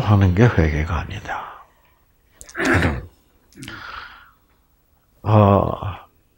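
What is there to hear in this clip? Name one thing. An elderly man speaks calmly through a headset microphone, in short phrases with pauses.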